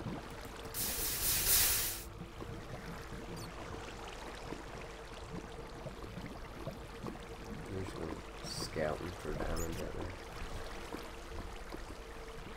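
Lava bubbles and pops.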